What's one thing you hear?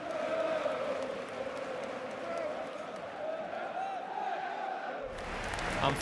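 A large crowd sings together loudly.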